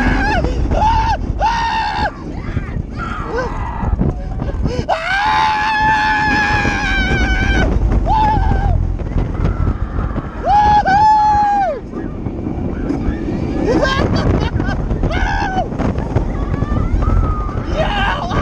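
Wind roars loudly past a microphone on a fast ride.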